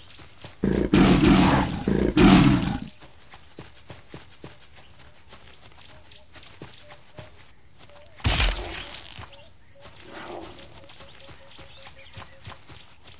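Paws patter softly on the ground.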